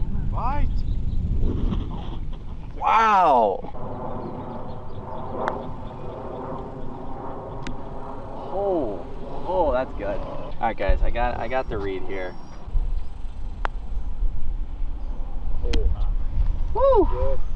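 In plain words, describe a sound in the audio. A young man talks and laughs nearby.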